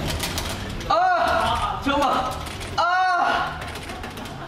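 Young men laugh together loudly.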